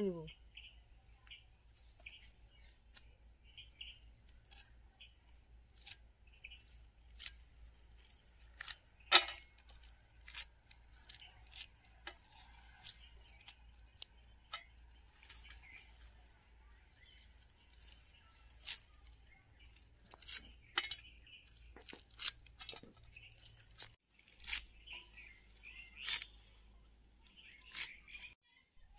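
Fresh leaves rustle softly as they are handled.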